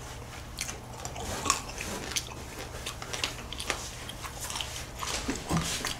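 Two young men chew food wetly close to a microphone.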